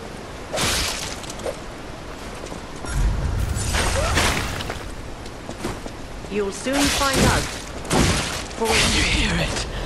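Heavy blades clash and strike in a fierce fight.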